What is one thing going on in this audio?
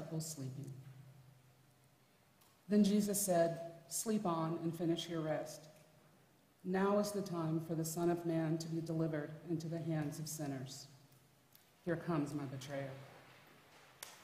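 A man reads aloud through a microphone in a large echoing hall.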